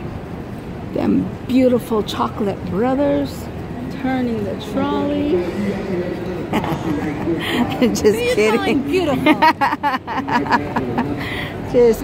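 Nearby adults chat casually in a crowd outdoors.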